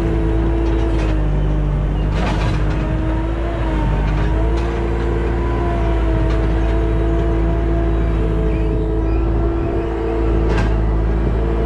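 A loader's steel bucket clanks and scrapes.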